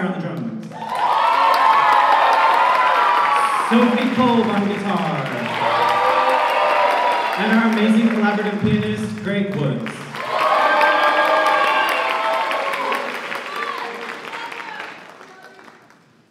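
A choir of young girls sings together in a large hall.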